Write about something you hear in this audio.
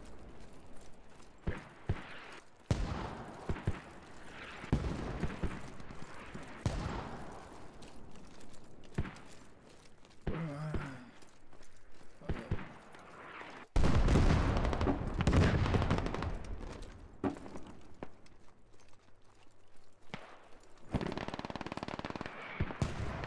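Footsteps crunch quickly over dirt and gravel.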